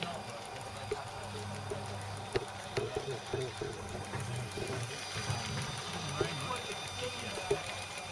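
A live-steam model locomotive chuffs along a small track outdoors.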